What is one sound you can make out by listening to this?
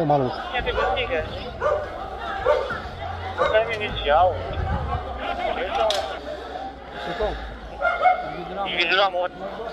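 Men shout excitedly outdoors.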